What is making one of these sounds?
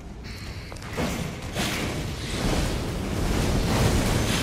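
Fire whooshes and roars in a burst of flame.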